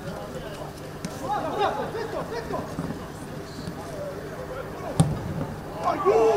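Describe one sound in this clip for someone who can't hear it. Men shout across an open field.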